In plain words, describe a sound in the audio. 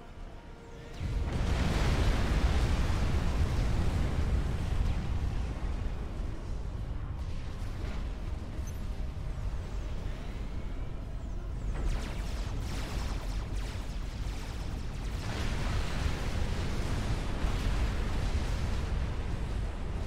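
Huge explosions boom and rumble deeply.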